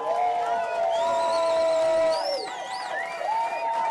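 A crowd whistles loudly.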